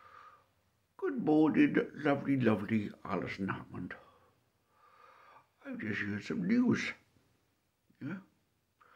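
A middle-aged man speaks close to the microphone in short bursts.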